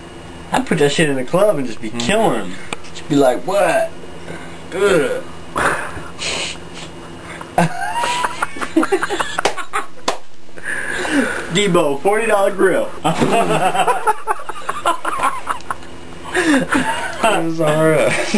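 A young man talks loudly and animatedly close by.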